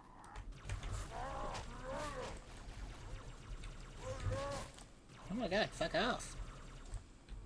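Alien creatures screech and roar.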